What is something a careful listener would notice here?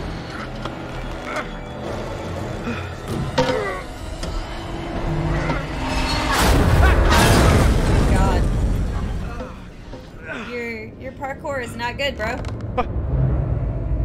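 A young woman talks close to a microphone, with animation.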